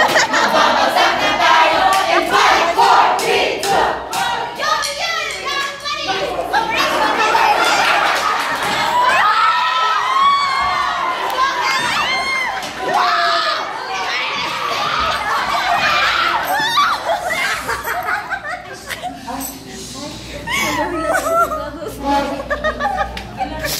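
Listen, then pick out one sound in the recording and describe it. Teenage girls laugh and shriek loudly nearby.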